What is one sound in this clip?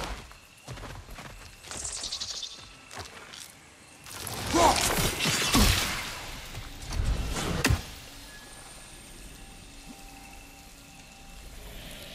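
Heavy footsteps tread on soft ground.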